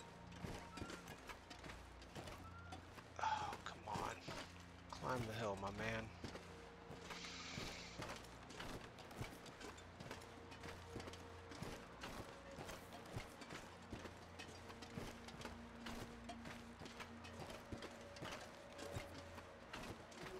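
Footsteps crunch through snow at a steady walk.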